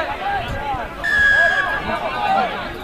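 A referee blows a whistle in a short, shrill blast outdoors.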